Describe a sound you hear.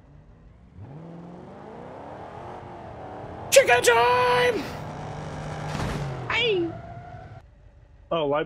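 A car engine revs up and speeds along.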